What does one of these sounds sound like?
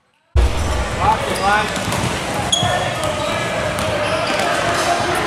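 Basketball sneakers squeak on an indoor court floor.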